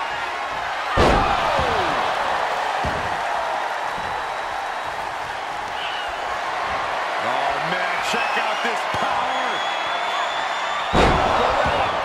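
A heavy body slams onto a wrestling mat with a loud thud.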